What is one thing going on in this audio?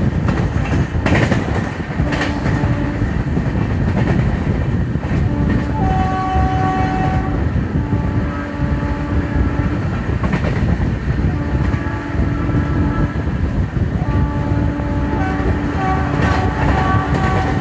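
A train rumbles fast along the tracks, its wheels clattering over the rails.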